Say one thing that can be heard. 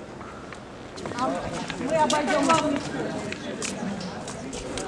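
Women talk with animation nearby, outdoors.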